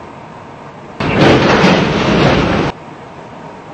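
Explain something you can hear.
A subway train's brakes hiss loudly.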